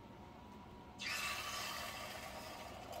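A fork whisks egg in a cup.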